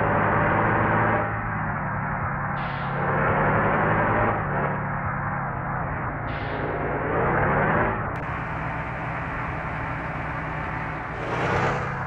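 A bus engine hums steadily and rises and falls as it changes gears.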